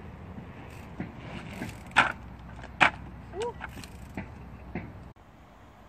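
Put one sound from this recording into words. A bicycle lands with sharp thumps after hops.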